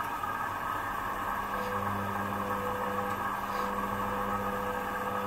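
A washing machine motor whines with a rising hum as the drum speeds up.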